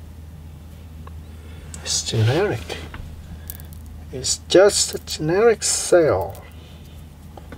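Small plastic and metal parts click and scrape softly as they are handled.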